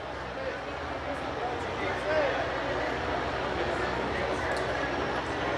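A young woman speaks into a microphone through loudspeakers outdoors.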